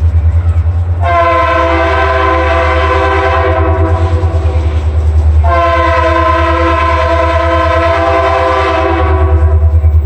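A diesel locomotive's horn blows loudly in two long blasts as a train approaches.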